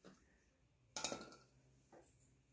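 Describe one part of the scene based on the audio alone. A metal engine part clanks as it is set down.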